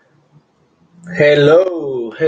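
A young man groans with strain, close to the microphone.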